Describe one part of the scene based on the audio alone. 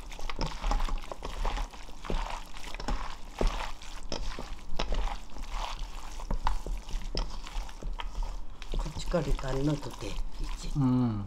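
Gloved hands squelch and squish through wet, saucy vegetables in a metal bowl.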